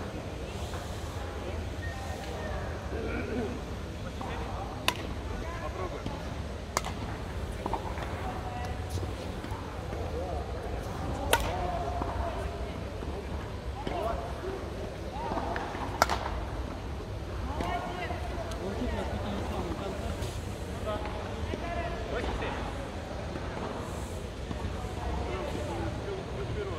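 Men talk now and then in a large echoing hall.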